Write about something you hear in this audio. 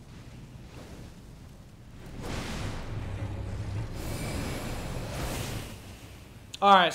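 A fire blast roars loudly.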